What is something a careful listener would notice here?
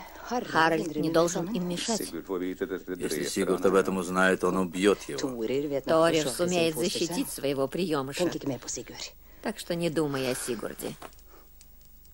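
A woman speaks quietly and earnestly, close by.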